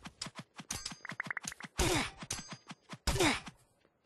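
A sword strikes repeatedly with quick, sharp hits.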